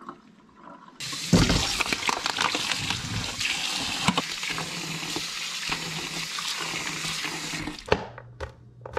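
Water runs from a tap and splashes into a metal colander.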